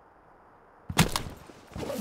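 A heavy thud of a body landing after a fall.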